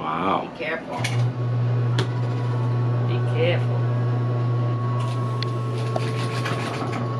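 A sewing machine runs with a steady, fast hum.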